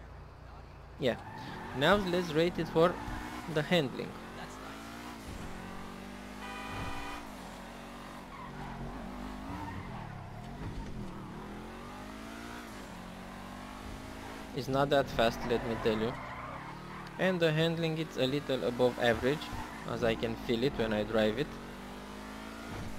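A car engine revs and hums as the car drives along.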